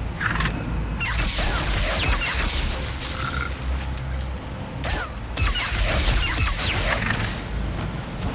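Sparks crackle and burst in quick bursts.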